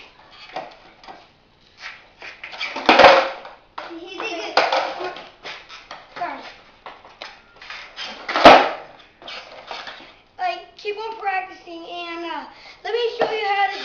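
Skateboard wheels roll on a hard floor.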